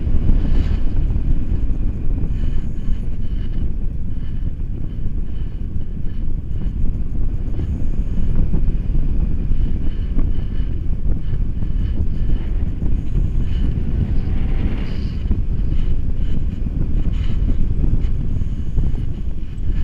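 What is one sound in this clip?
Strong wind rushes and buffets loudly past a microphone high in the open air.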